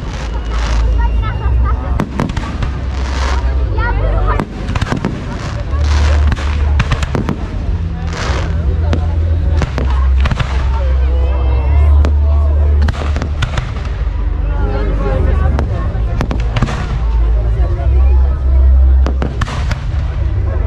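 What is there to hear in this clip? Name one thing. Fireworks bang and crackle loudly overhead.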